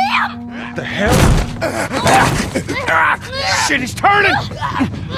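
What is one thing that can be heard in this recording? Bodies thrash and crash in a violent struggle.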